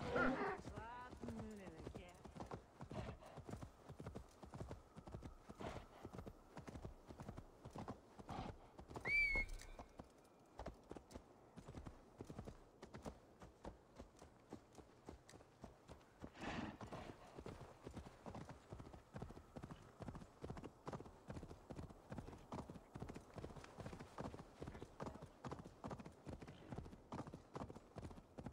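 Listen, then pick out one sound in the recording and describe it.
Hooves thud steadily on a dirt path.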